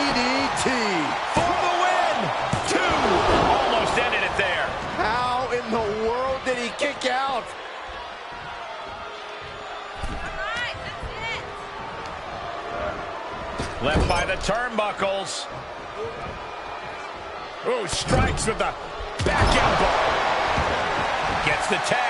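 Heavy thuds ring out as bodies slam onto a wrestling mat.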